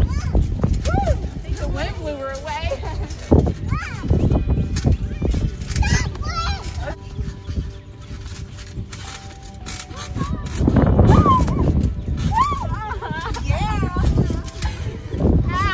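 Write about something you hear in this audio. A trampoline mat thumps and creaks under bouncing feet.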